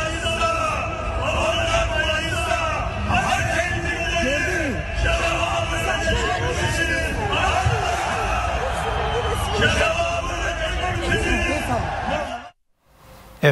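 A crowd cheers and chants loudly outdoors.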